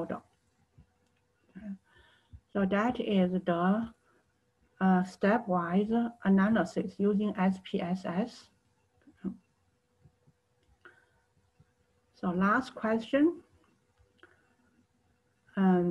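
A woman speaks calmly and clearly into a close microphone, in short bursts with pauses.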